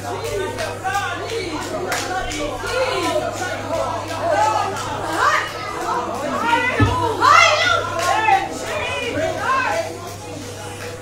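A young girl speaks into a microphone, heard through loudspeakers in an echoing hall.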